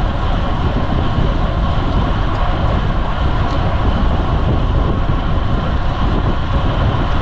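Wind rushes loudly past while cycling outdoors.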